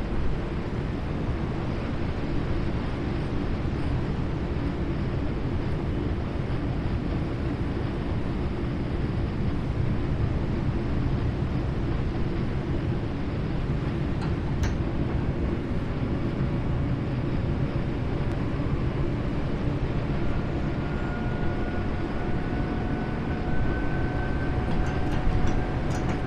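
A train rumbles steadily along the rails, heard from inside the cab.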